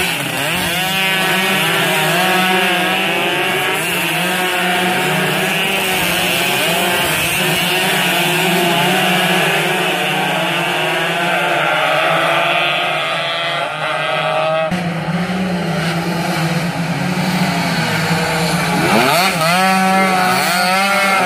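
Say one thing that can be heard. Motorcycle engines rev loudly and whine as they race past close by.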